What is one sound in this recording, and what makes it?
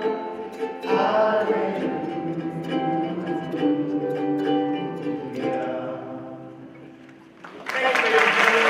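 A ukulele is strummed.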